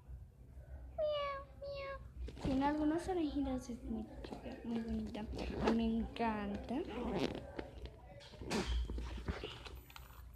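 A young girl speaks close by, with animation.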